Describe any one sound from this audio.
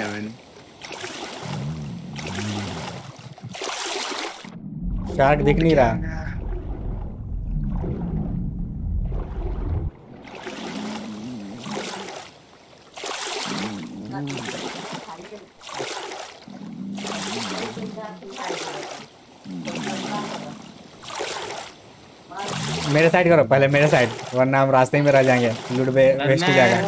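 Water splashes in rhythmic swimming strokes.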